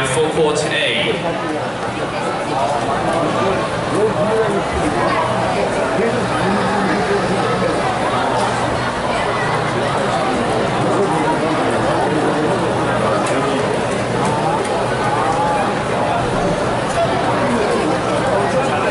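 A large crowd chatters steadily in a big echoing hall.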